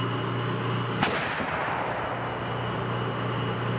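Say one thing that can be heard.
An artillery gun fires with a loud boom that echoes outdoors.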